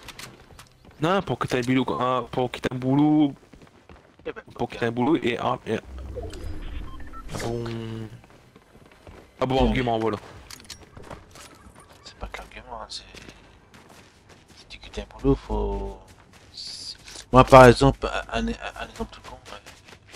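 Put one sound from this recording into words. A man talks with animation into a close microphone, with pauses.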